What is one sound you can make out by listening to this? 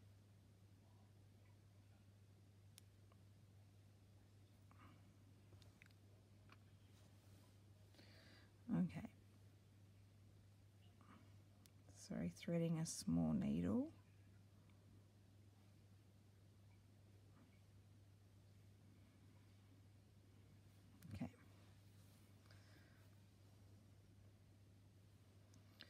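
Thread is pulled through fabric with a soft rustle.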